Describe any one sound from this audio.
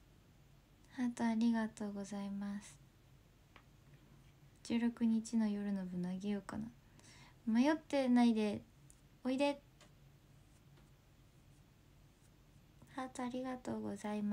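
A young woman speaks softly and casually close to a microphone, in short bursts with pauses.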